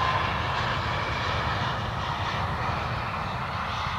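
Tyres thump onto a runway as a jet airliner touches down.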